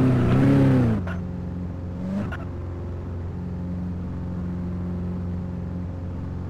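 A car engine idles steadily.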